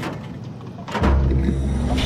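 A heavy metal lever clunks.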